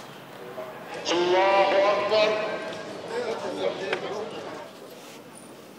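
A man's voice chants a call to prayer through distant loudspeakers.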